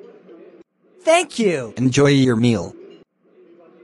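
A man speaks briefly and calmly in a synthetic-sounding voice.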